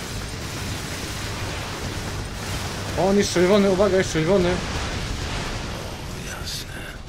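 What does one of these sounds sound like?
An explosion booms amid loud gunfire.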